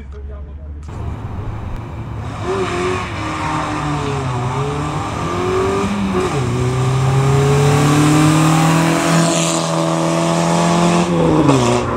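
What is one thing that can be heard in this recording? A car engine revs hard and roars as the car speeds away.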